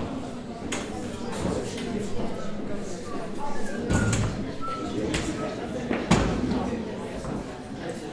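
A folding chair knocks and scrapes.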